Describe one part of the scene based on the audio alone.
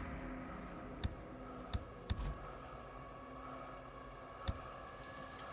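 Soft clicks tick as a selection wheel turns.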